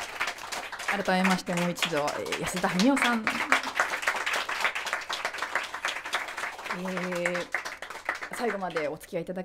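A woman speaks warmly into a microphone.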